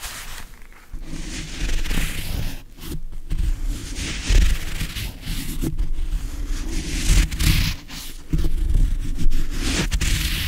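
Gloved fingers scratch and rub a microphone's foam cover.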